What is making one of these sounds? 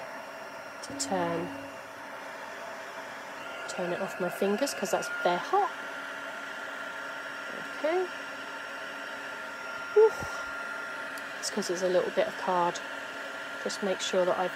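A heat gun blows with a steady whirring hiss.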